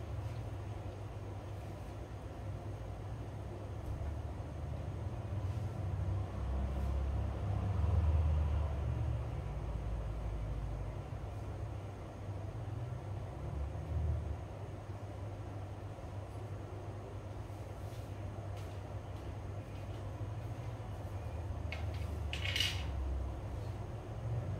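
Hands rub softly over skin.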